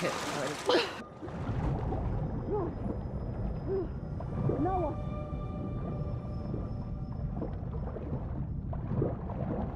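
A muffled underwater rumble with bubbling.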